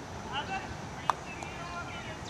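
A croquet mallet strikes a ball with a sharp wooden knock.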